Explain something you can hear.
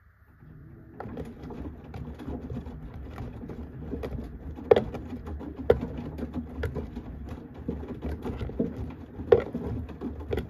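A washing machine drum turns, sloshing and tumbling laundry with occasional thumps.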